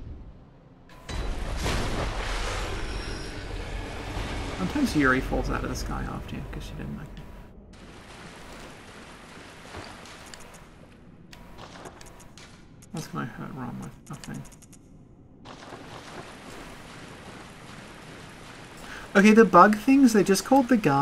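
Water splashes as a figure wades through a lake.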